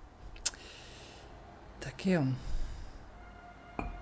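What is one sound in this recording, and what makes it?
A cup is lifted off a saucer.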